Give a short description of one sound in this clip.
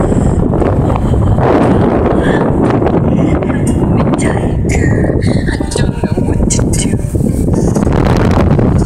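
Strong wind roars and buffets loudly, heard outdoors in flight.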